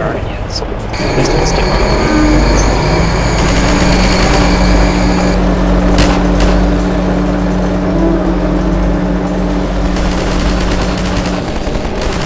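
A buggy engine hums steadily as it drives.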